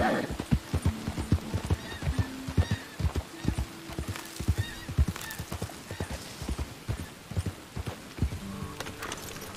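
Horse hooves clop steadily on a dirt track.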